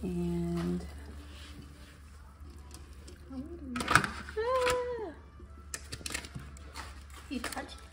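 A spatula scrapes cereal out of a pot into a foil tray.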